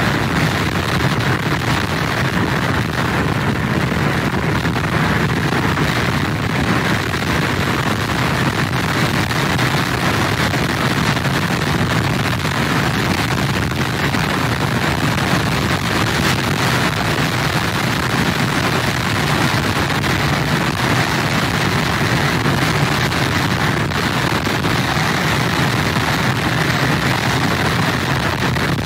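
Heavy surf crashes and roars against a pier.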